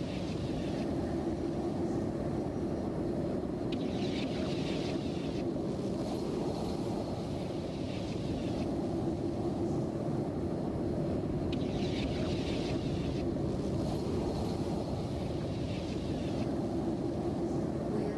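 A spaceship engine rumbles with a steady, deep hum.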